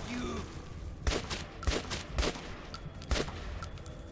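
A rifle fires several sharp single shots.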